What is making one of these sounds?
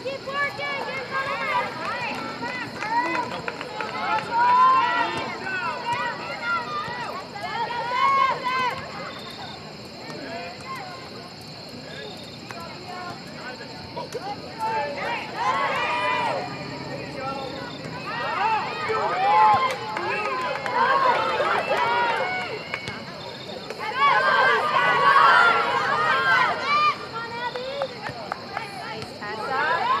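Young women shout and call out to each other across an open outdoor field.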